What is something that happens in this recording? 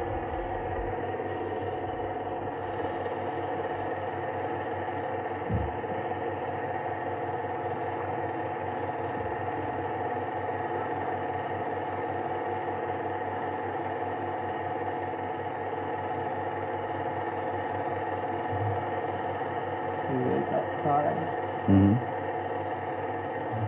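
An aircraft engine drones steadily from inside the cabin.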